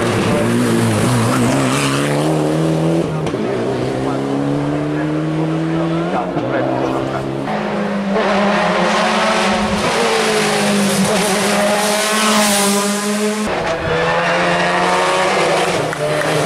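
A racing car engine roars loudly and revs up through the gears as it speeds past close by.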